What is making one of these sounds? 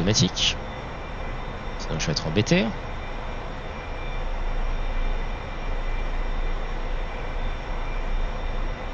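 A jet engine roars steadily in flight.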